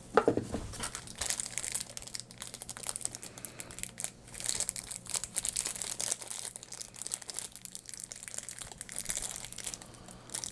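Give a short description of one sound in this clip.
Hands crinkle and tear plastic wrapping.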